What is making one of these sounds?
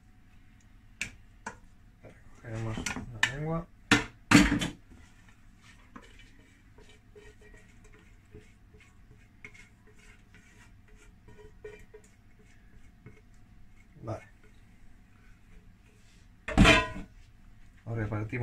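A spatula scrapes against a pot.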